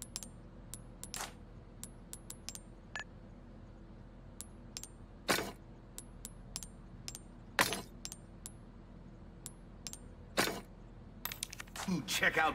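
Short menu clicks and chimes tick in quick succession.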